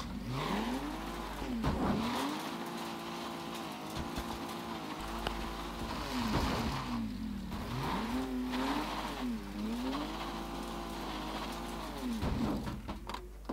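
A car engine revs and drones as the car speeds along.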